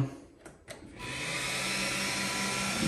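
A machine's fan starts and whirs steadily.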